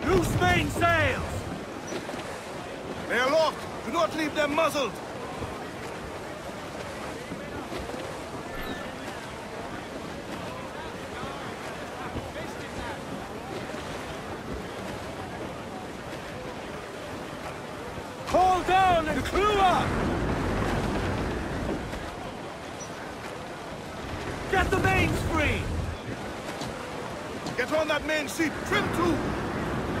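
Waves wash steadily against a wooden ship at sea.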